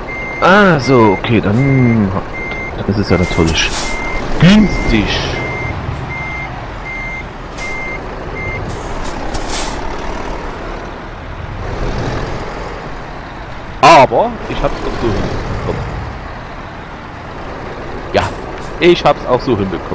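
A truck engine rumbles at low speed.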